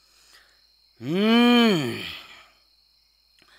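A young boy calls out in a long, drawn-out voice that rises and falls.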